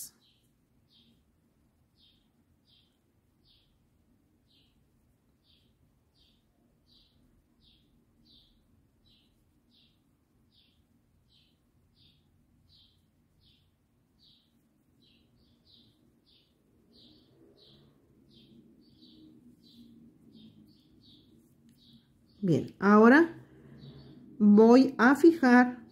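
A metal crochet hook softly clicks and rubs against yarn.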